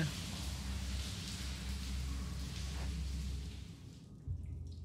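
Water rushes steadily down a waterfall nearby.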